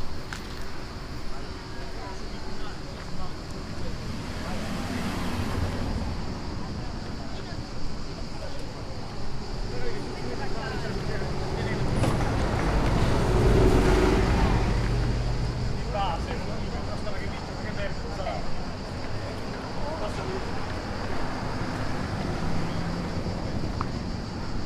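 Traffic rumbles nearby, swelling as vehicles pass.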